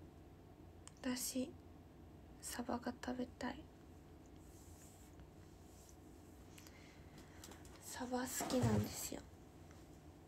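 A young woman speaks quietly in short bursts, close by.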